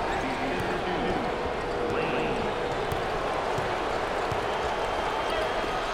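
A large crowd roars steadily in an echoing arena.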